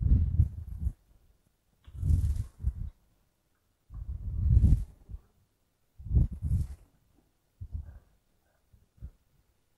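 A woman speaks calmly in short bursts, close by.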